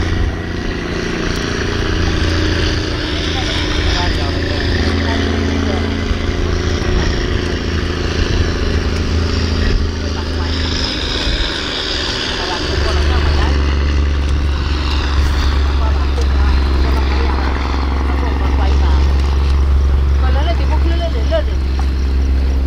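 Small waves lap against rocks.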